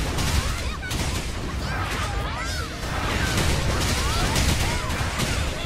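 Explosions and clashing blows boom in a fast video game battle.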